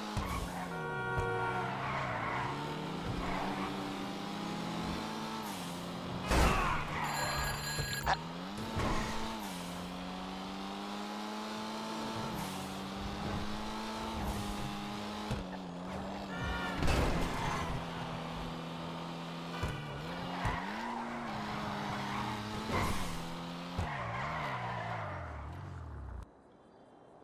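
A sports car engine roars and revs up and down as the car speeds along.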